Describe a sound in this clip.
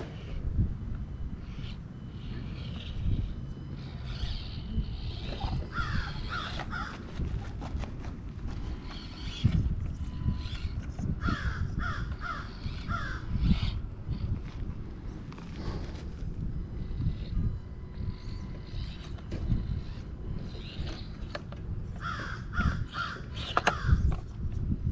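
A small electric motor whirs as a toy truck crawls over rocks.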